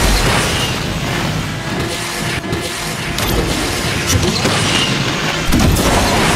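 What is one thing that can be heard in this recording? A nitro boost whooshes loudly.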